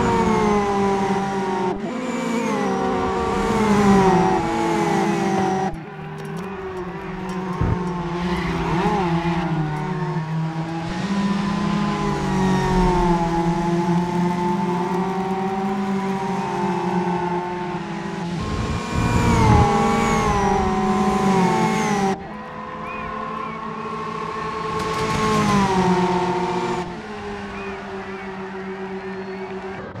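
Tyres screech on tarmac.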